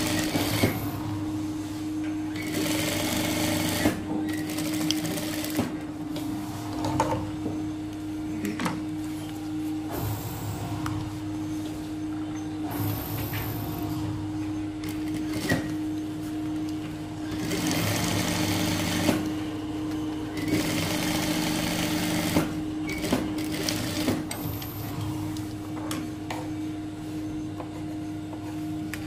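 A sewing machine hums steadily.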